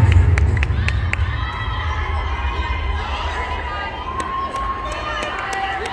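Young women cheer and scream loudly in a large echoing hall.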